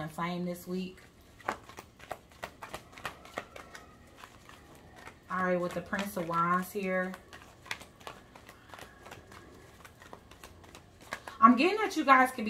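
Playing cards riffle and flap as they are shuffled.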